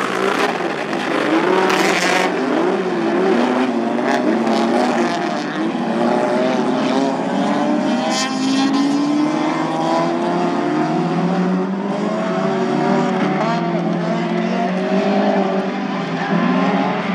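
Several car engines roar and rev loudly outdoors.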